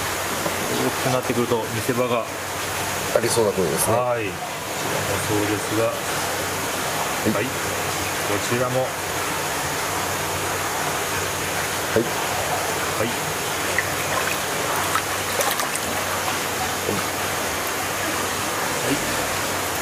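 Water splashes as a fish is lifted and handled.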